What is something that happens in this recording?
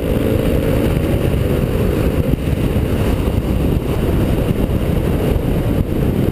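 A motorcycle engine runs while riding.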